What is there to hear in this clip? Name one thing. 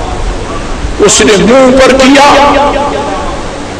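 An elderly man raises his voice loudly in a drawn-out, chanting tone.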